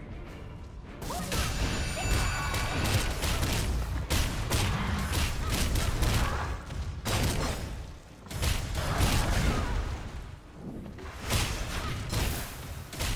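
Heavy thuds and impact sounds of a fight ring out.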